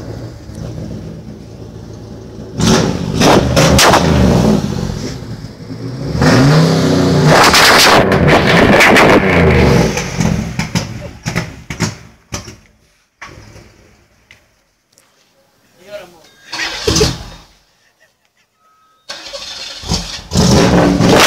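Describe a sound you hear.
A car engine revs hard through its exhaust, roaring up and falling back again and again.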